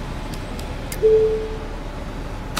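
A ticket machine gives a short beep.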